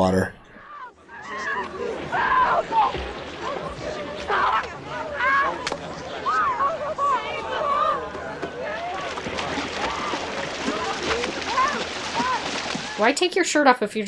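Water splashes as someone wades through the sea.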